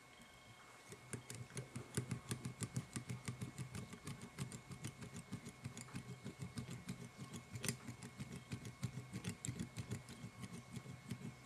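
A thread bobbin ticks rapidly and steadily as thread is wound around a hook.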